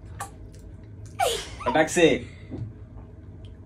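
A young woman makes vocal sounds into a glass bottle.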